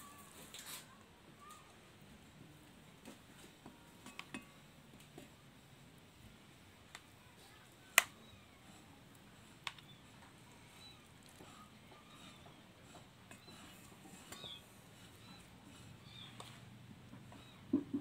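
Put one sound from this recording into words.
A spoon scrapes and knocks against a bowl.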